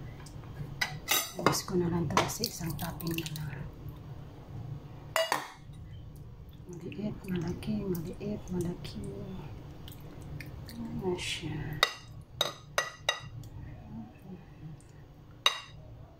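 A metal ladle clinks against a glass dish.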